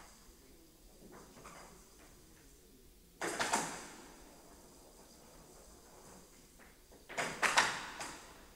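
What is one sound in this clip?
A ball with a rattle inside rolls across a table.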